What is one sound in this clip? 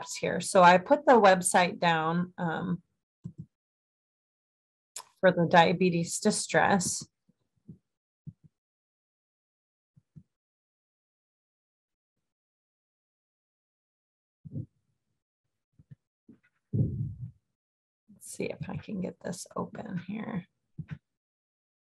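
A young woman speaks calmly through an online call microphone, pausing between phrases.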